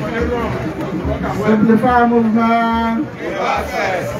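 An older man speaks into a microphone over loudspeakers.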